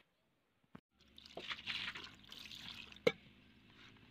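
Water splashes over a fish.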